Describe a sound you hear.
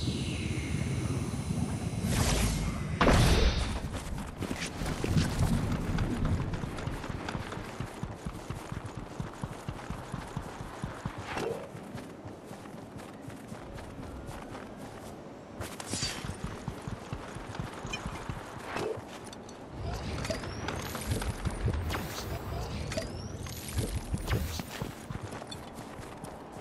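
Quick footsteps patter on rock and grass.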